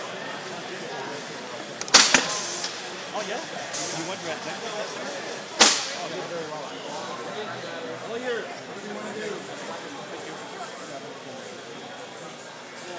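A crowd of young people talk and chatter nearby in a large, noisy hall.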